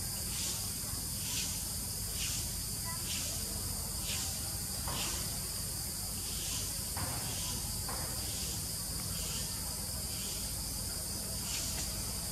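A monkey chews and bites into soft fruit.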